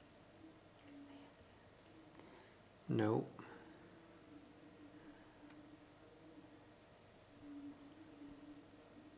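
A man speaks calmly into a microphone in a quiet room.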